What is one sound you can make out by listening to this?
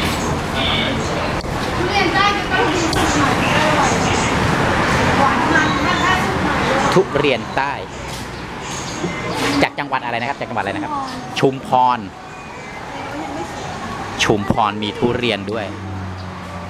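A man and a woman talk close by.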